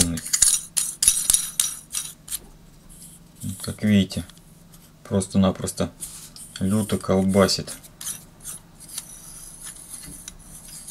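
Small metal parts click and scrape as a lens ring is turned by hand.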